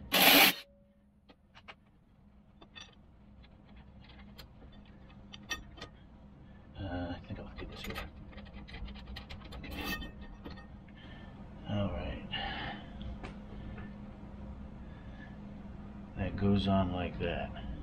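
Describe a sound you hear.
Metal parts clink and rattle against each other.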